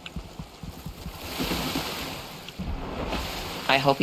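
Water splashes as something dives in and swims.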